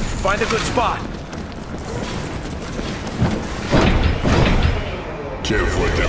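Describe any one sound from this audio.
Weapons fire and blasts boom in a noisy battle.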